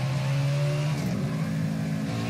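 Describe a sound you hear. A race car engine drops in pitch as the driver shifts gear.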